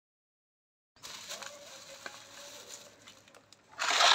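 A plastic bag crinkles as hands pull a package out of it.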